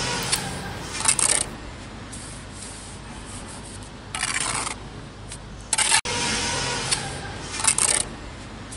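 A metal trowel scrapes against bricks and mortar in short bursts.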